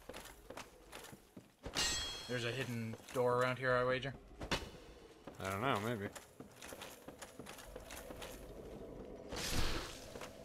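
Heavy armored footsteps thud on wooden boards.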